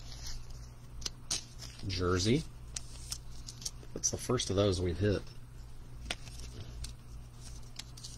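A plastic card sleeve crinkles and rustles between fingers.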